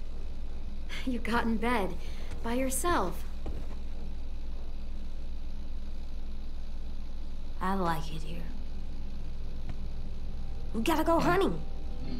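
A young boy speaks with excitement.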